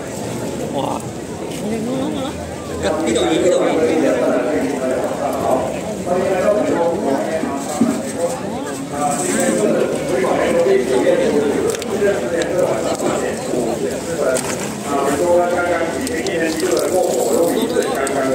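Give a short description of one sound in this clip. A large crowd of men and women chatters loudly all around.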